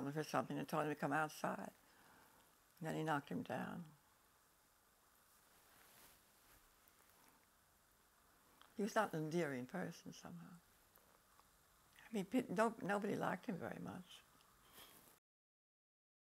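An elderly woman speaks calmly and slowly, close by.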